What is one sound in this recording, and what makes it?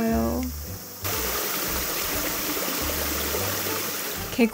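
A small stream of water trickles and splashes over rocks.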